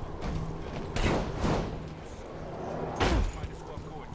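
Whooshes sound as a figure leaps.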